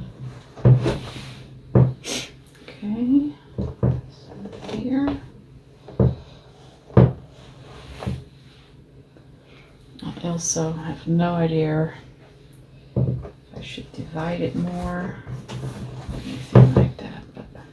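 A board knocks softly on a table as hands press on it.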